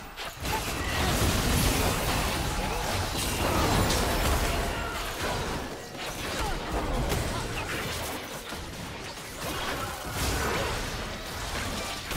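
Game spell effects whoosh, crackle and burst in rapid succession.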